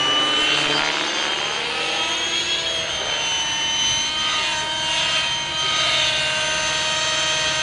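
A model helicopter's motor whines high overhead, its pitch shifting as it flies.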